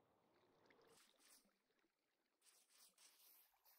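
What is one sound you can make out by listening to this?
Water splashes and trickles down a small waterfall.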